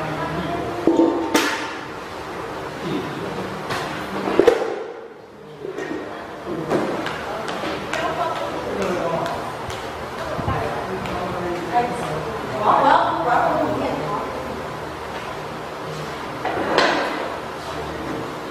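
A woman calls out with animation in an echoing room.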